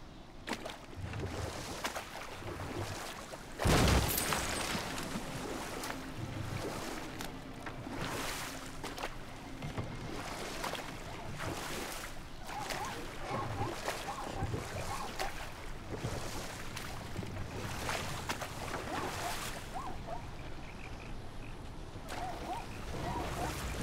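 Wooden oars dip and splash in water at a steady rhythm.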